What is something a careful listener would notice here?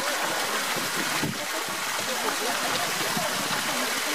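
Water splashes softly as a large animal climbs out of a pool.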